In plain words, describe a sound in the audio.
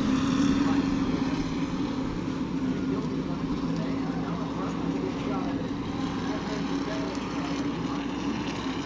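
Race car engines roar steadily as cars speed around the track.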